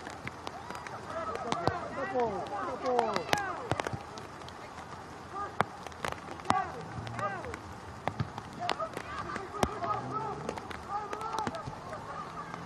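Players shout and call to each other across an open field, heard from a distance.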